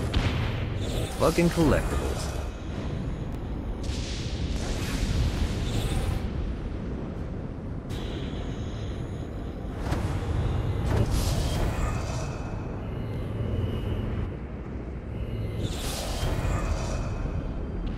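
A bright shimmering chime rings out as glowing energy is collected.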